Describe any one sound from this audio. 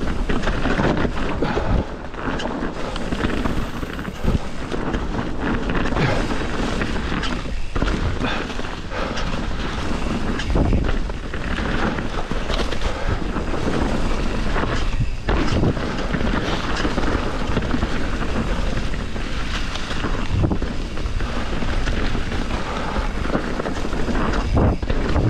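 A bicycle frame rattles and clunks over bumps.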